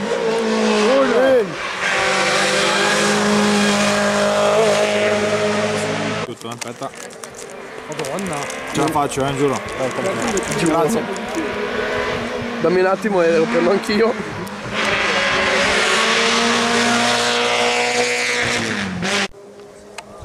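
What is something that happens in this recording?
Gravel sprays from tyres as cars speed by.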